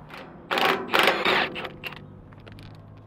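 Metal tools clatter and scrape inside a metal toolbox.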